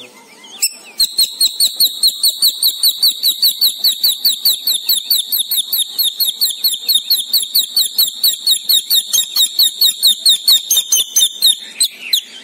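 Small birds chirp rapidly and steadily, close by.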